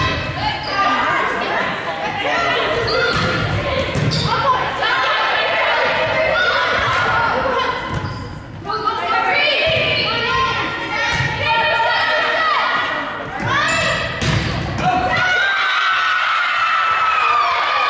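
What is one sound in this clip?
Young women shout and call to each other in an echoing gym.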